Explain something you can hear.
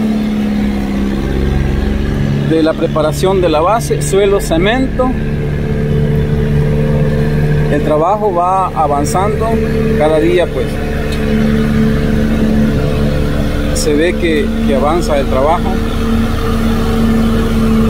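A road roller's engine hums steadily in the distance.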